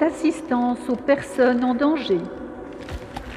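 An elderly woman speaks calmly into a microphone, echoing in a large hall.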